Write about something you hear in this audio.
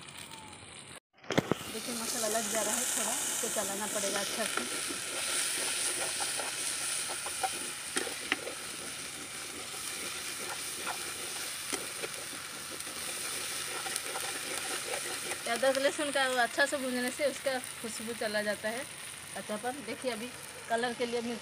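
A metal spoon scrapes and clinks against a cooking pot.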